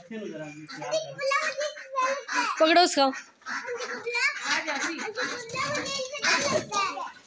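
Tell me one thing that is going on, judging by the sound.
Chickens and birds squawk and cluck loudly close by.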